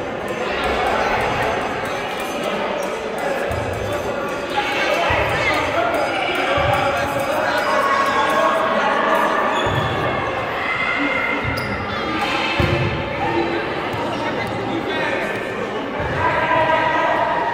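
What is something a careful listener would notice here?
Young players call out to each other in a large echoing gym.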